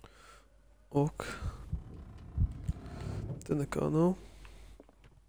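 A wooden drawer scrapes as it slides open.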